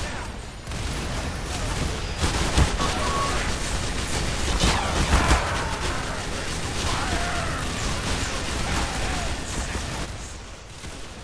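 Explosions boom and crackle close by.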